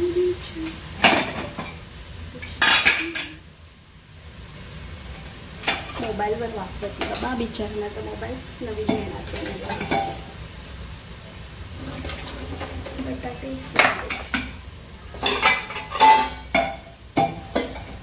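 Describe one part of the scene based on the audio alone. Metal pots and bowls clank as they are set down on a stovetop.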